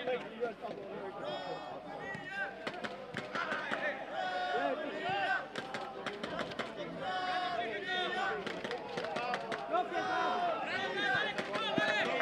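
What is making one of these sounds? A football thuds as it is kicked.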